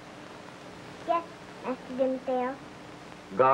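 A young girl speaks in a small high voice.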